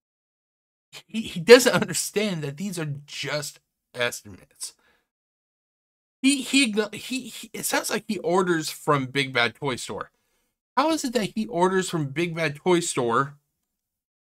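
A middle-aged man talks with animation through a microphone.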